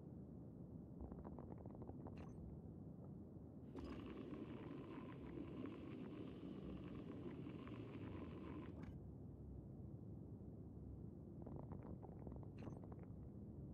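A spray can rattles as it is shaken.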